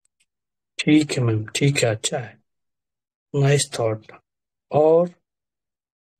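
A man speaks calmly and close by, heard through a phone microphone, in short bursts with pauses.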